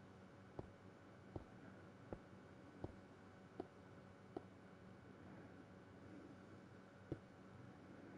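Footsteps tap on stone at a steady walking pace.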